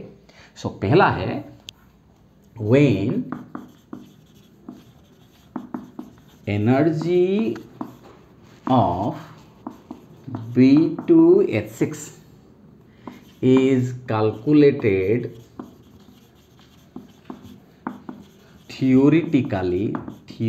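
A man speaks calmly in short phrases, as if explaining.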